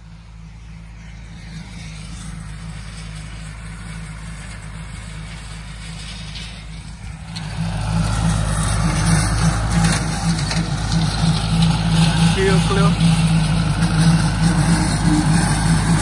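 A tractor engine drones steadily, growing louder as it comes close.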